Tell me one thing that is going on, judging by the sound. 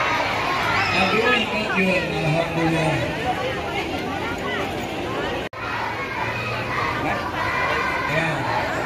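A large crowd of men and women chatters and calls out outdoors.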